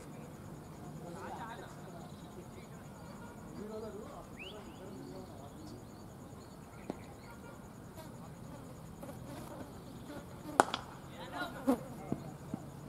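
Men call out outdoors.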